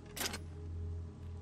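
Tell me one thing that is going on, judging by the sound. A car hood slams shut.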